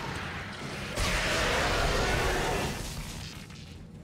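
An energy weapon fires with a crackling electric burst.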